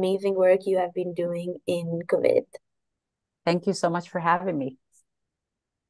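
A young woman speaks warmly through an online call.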